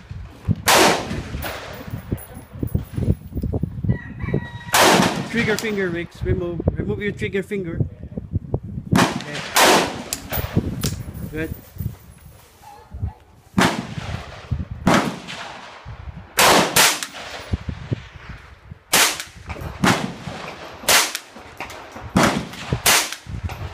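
A rifle fires sharp, loud shots one at a time, each with a short echo.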